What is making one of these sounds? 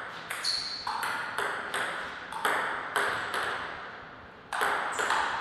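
A table tennis ball clicks back and forth on paddles and the table in a quick rally.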